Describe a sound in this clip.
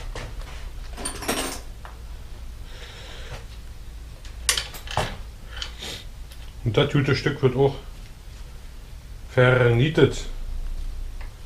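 Tools click and clatter against a bicycle.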